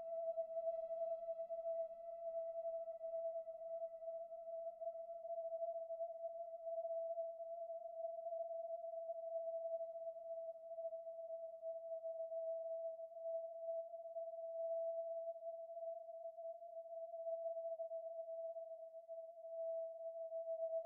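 A synthesizer drones on one steady, wavering tone.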